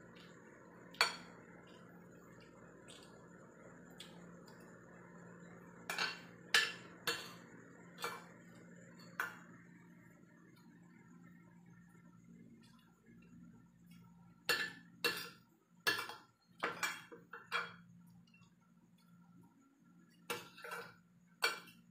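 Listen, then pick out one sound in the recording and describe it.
A fork clinks and scrapes against a ceramic plate.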